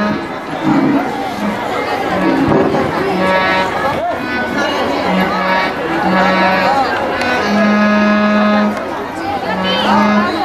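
A harmonium plays a sustained melody.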